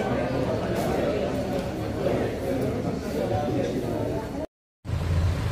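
A crowd of people murmurs and chatters indoors.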